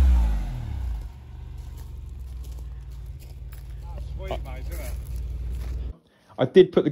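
A car engine idles with a low rumble.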